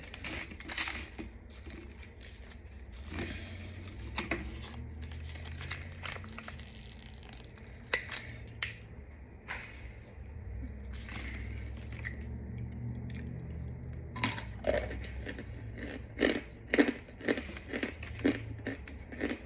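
Gloved hands crunch and crumble chalky powder.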